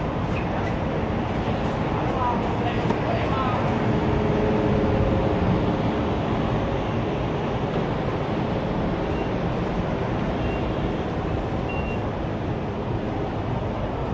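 Footsteps of many people shuffle along a paved street.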